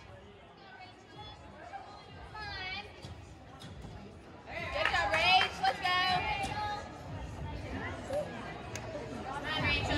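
Feet thud on a wooden balance beam.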